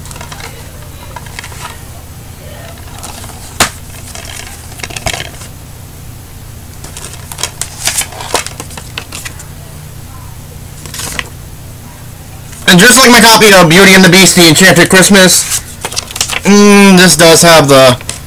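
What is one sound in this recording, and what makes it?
Plastic cases clack and rustle in a hand.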